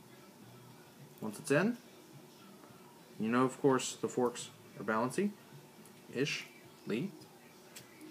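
Metal forks clink against a drinking glass.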